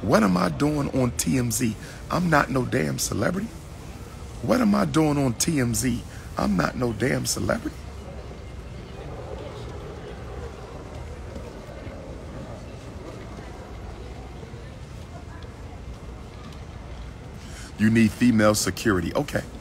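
A man talks with animation close to a phone microphone.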